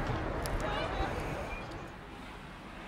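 Wind blusters against a phone outdoors.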